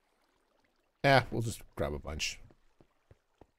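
A man speaks briefly with animation into a close microphone.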